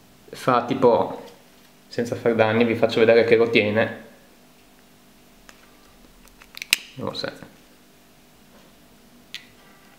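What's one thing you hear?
A watch strap and plastic wrapping rustle and click softly as hands handle them.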